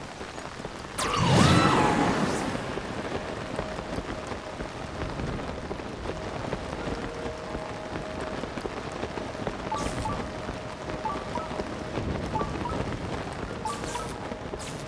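Wind rushes past loudly during a glide through the air.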